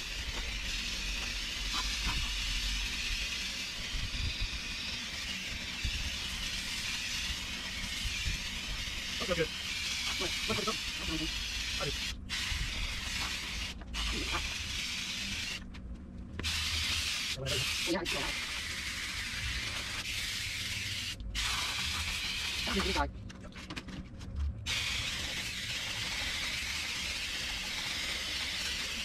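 Water sprays from a hose into a bucket.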